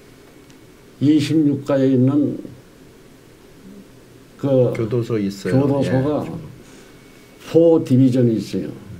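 An elderly man speaks calmly and deliberately into a microphone, with pauses.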